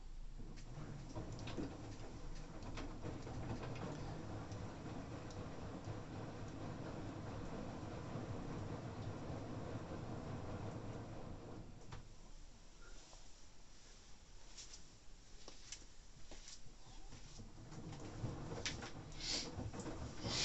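A washing machine drum turns with a steady rumble.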